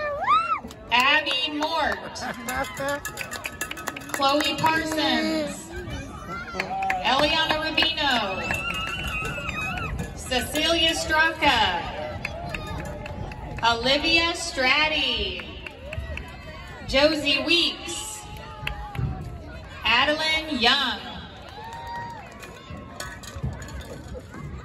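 Young girls shout cheers together in rhythm, outdoors.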